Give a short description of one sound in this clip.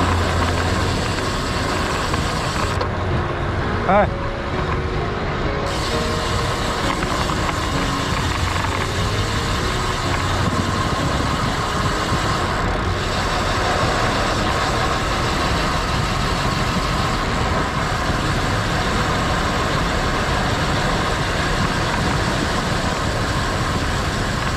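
Wind rushes past a road cyclist descending at speed.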